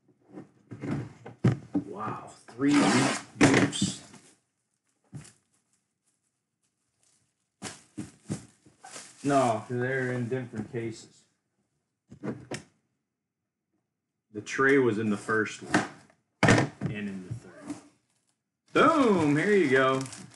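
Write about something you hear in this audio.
A cardboard box is slid and set down on a table.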